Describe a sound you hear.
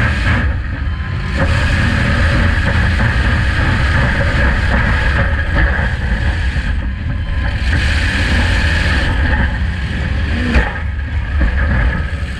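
A loud car engine roars and revs close by.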